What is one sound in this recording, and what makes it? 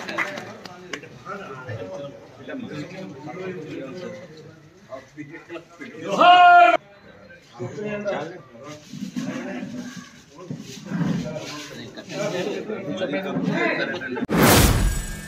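People chatter in a crowd nearby.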